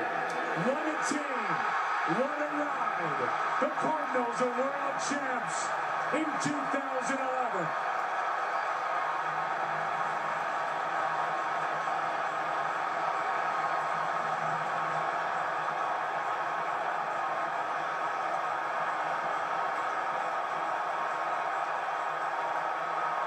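A large crowd cheers and roars steadily, heard through a television loudspeaker.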